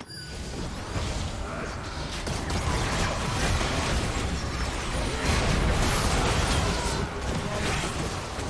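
Magic blasts and hits crash and crackle in a fast fight.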